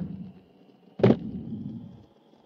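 A skateboard grinds along a ledge.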